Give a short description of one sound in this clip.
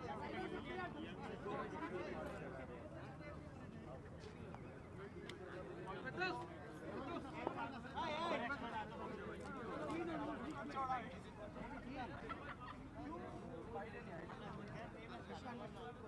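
A crowd of men and women talk and shout over one another outdoors.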